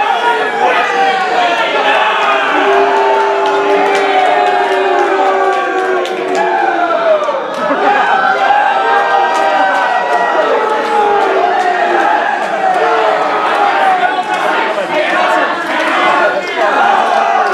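A crowd chants and cheers loudly in an echoing hall.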